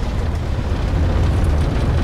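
Water gushes and splashes.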